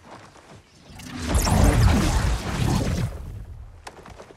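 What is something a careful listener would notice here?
Crackling energy surges with a loud rumbling whoosh.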